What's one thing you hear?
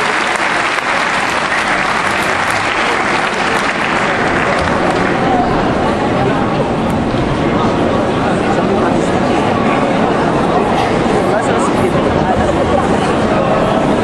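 A large audience applauds loudly in a big echoing hall.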